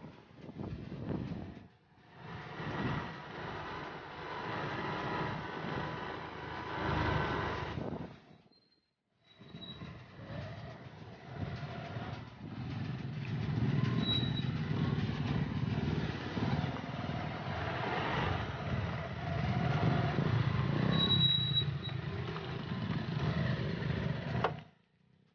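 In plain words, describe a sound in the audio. Small motor scooters ride along.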